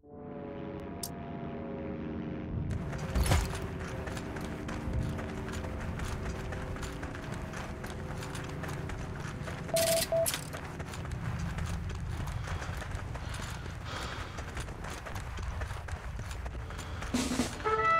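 Footsteps rustle through grass and dry leaves.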